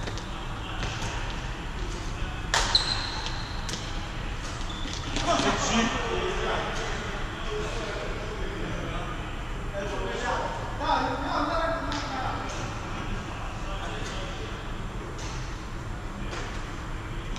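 Rackets strike a shuttlecock in sharp pops, echoing in a large hall.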